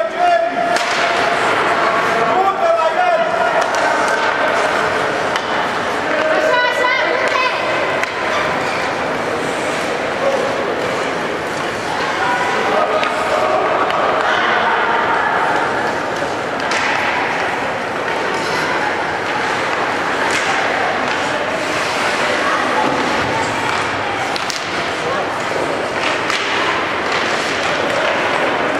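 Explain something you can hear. Ice skates scrape and swish across an ice rink.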